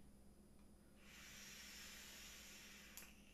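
A man draws a long, hissing breath in close by.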